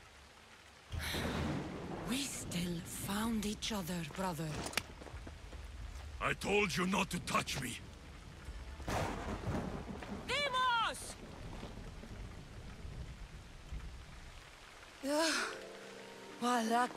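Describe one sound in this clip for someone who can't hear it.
A young woman speaks warmly, close by.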